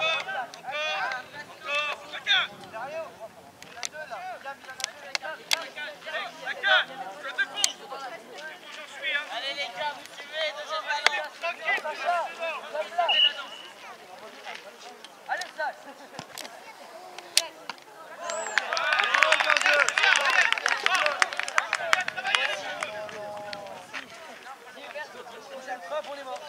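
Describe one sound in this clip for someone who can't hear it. Young girls call out and shout to each other across an open field.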